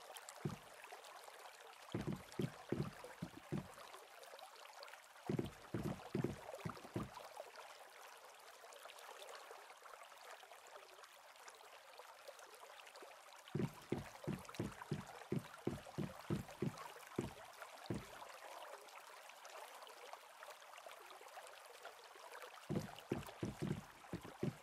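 Footsteps thud on wooden planks in quick bursts.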